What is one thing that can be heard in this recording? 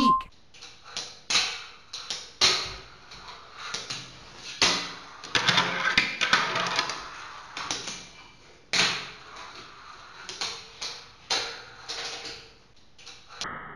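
A fingerboard clacks and snaps against a stone countertop as tricks land.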